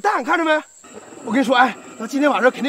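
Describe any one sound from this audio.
A man speaks urgently.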